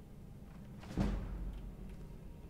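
A lock mechanism clicks open.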